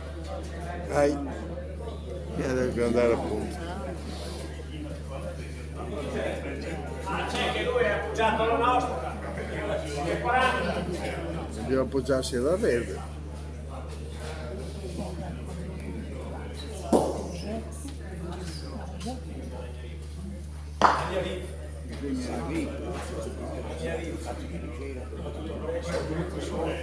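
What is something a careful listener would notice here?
Men talk nearby in an echoing indoor hall.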